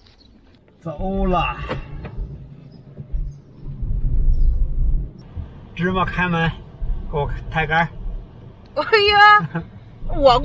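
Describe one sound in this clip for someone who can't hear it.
A car engine hums low inside the car.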